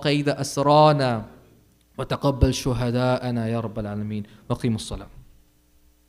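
A man chants in a drawn-out, melodic voice through a microphone.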